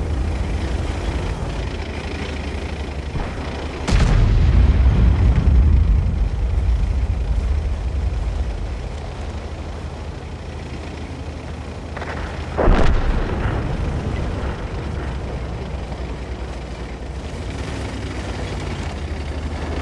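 A tank engine rumbles low and steady.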